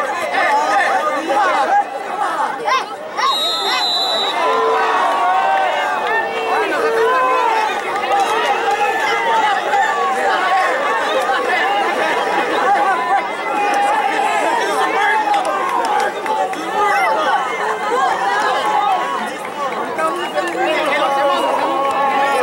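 Young men shout to each other across a field.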